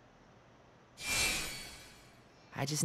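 A soft sparkling chime rings.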